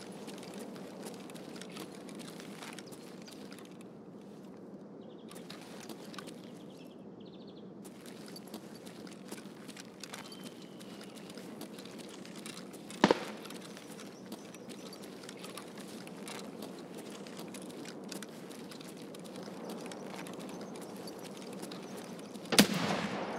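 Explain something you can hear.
Footsteps crunch steadily over gritty ground.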